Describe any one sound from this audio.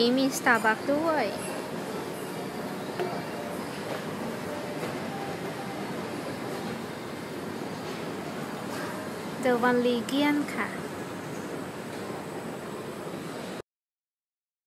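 An escalator hums and rumbles steadily.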